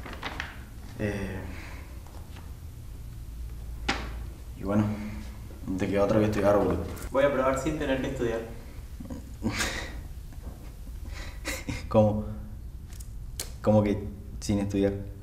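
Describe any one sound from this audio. A young man speaks close by, calmly.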